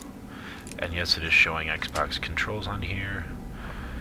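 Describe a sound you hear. A lock clicks and scrapes as it is picked.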